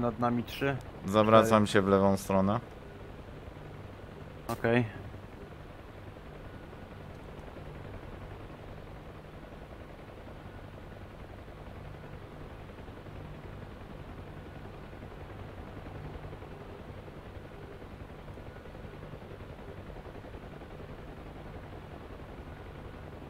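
A helicopter engine drones steadily with a low, throbbing rotor hum.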